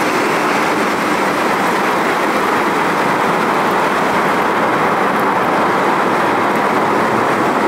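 A jet airliner roars as it rolls through spray.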